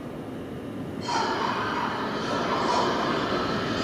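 Train wheels screech loudly on the rails.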